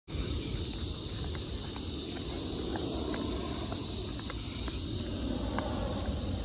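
Footsteps and a dog's paws tap softly on pavement.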